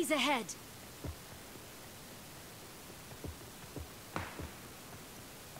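Footsteps thud softly on the ground.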